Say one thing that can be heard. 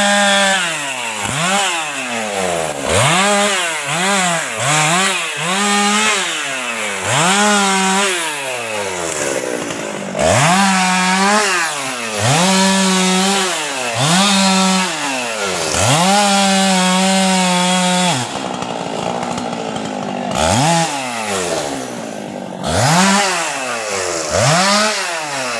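A chainsaw revs up and down repeatedly while cutting wood.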